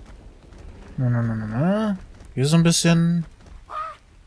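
A bear growls and grunts.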